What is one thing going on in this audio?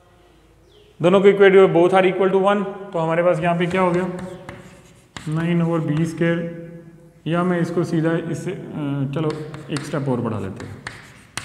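A man speaks clearly and with some feeling, close by, in a room with a slight echo.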